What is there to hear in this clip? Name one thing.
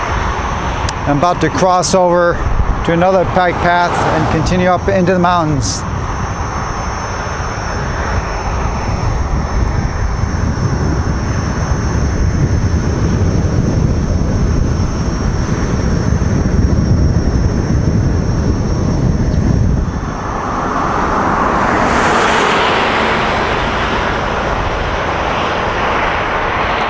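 Wind rumbles and buffets the microphone.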